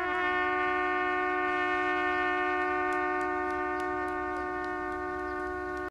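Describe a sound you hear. A trumpet plays a long, steady held note.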